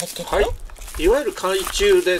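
Bubble wrap crinkles in handling.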